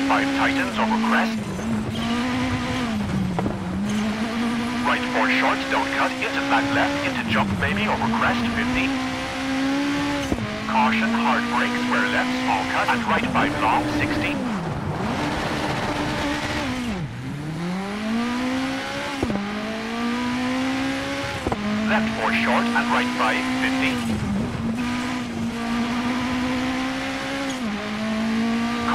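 Tyres crunch and skid over snowy gravel.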